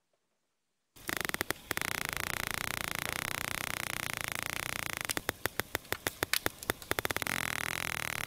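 Recorded dolphins click rapidly.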